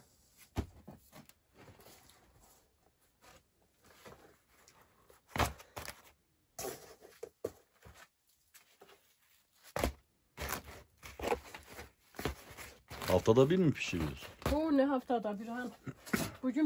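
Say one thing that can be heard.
Flatbread rustles and crackles as it is handled.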